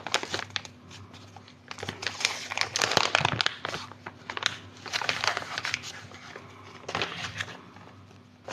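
Plastic crinkles and rustles close up.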